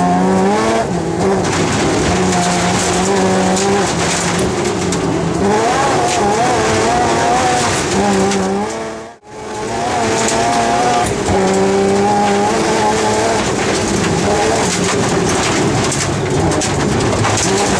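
Tyres rush and crackle over a snowy gravel road.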